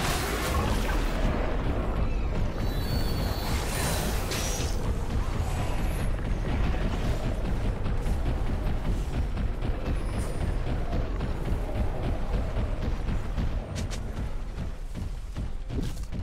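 Magic spells whoosh and crackle during a fight.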